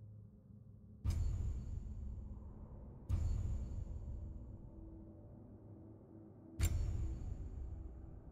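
Deep whooshing menu sounds boom three times as pages change, each fading slowly.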